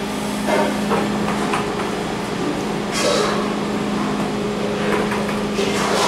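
An elevator button clicks as it is pressed.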